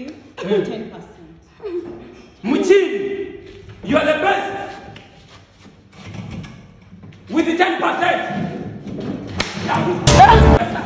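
Young men shout with animation close by.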